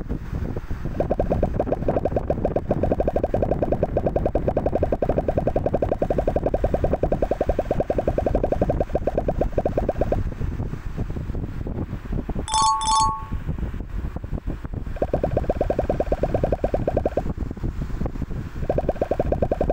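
Balls rattle rapidly against blocks in a game, in quick ticking bursts.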